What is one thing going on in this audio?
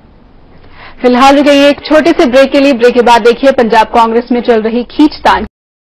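A young woman reads out the news briskly through a studio microphone.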